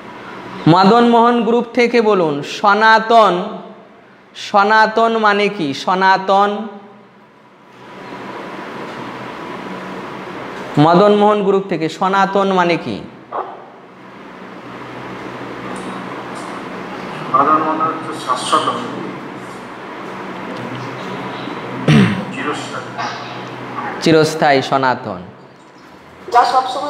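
A man chants in a steady, melodic voice close to a microphone, pausing between phrases.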